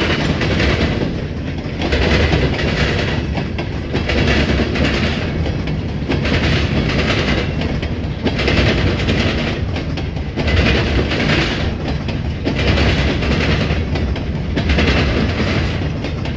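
Train wheels clack rhythmically over the rail joints.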